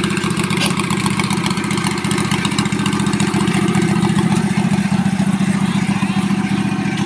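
A tractor engine idles close by with a steady, rapid chugging.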